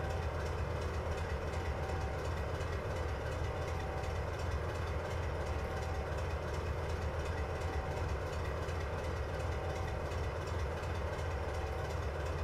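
A diesel locomotive engine drones steadily.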